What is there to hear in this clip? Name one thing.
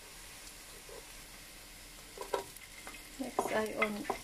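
Chopped onion drops into a pot.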